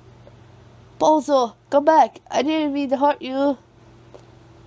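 A high-pitched cartoonish voice speaks quickly with animation.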